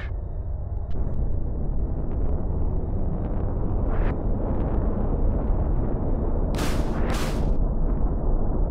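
Jet engines roar as aircraft fly close.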